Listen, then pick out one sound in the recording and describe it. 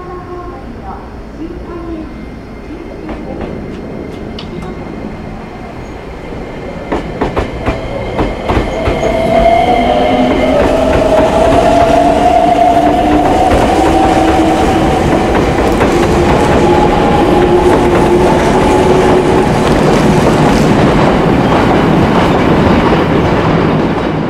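A train pulls into a station and rolls past close by, getting louder.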